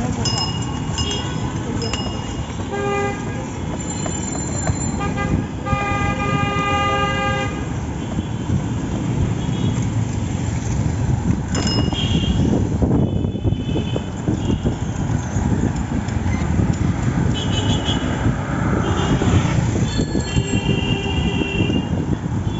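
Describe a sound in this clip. Vehicle horns honk repeatedly.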